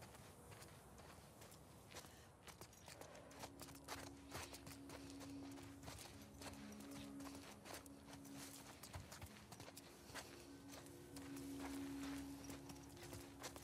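Footsteps crunch softly over gravel and grass.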